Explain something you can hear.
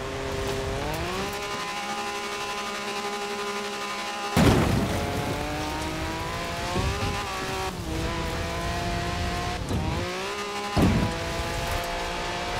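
An engine revs loudly and shifts gears as a buggy races.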